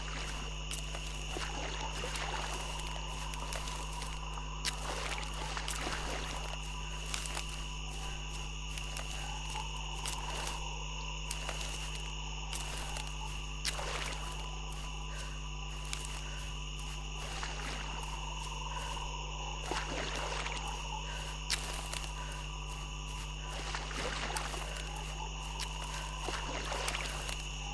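Footsteps squelch through wet grass and shallow water.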